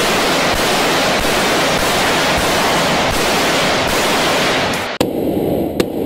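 A rifle fires rapid shots close by.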